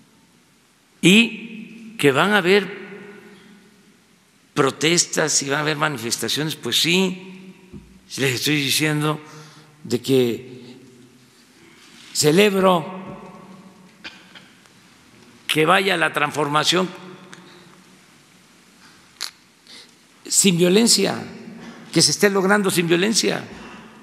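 An elderly man speaks calmly into a microphone in short phrases, with pauses between them.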